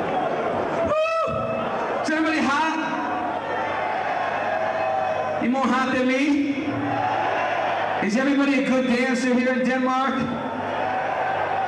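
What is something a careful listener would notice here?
A man shouts into a microphone over loudspeakers.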